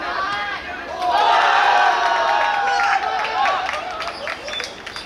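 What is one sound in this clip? Young men cheer loudly after a goal.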